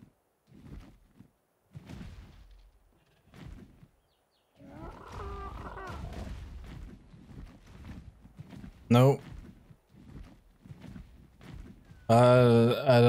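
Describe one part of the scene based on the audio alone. A man talks casually into a microphone, close up.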